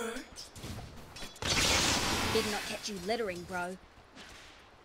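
Magic spells crackle and whoosh in a loud burst of fighting.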